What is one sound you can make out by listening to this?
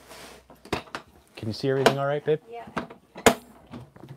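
Plastic toolbox latches click shut.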